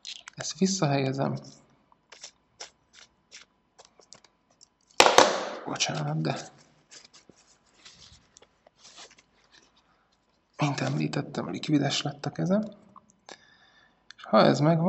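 Small metal parts click and tick as they are twisted together.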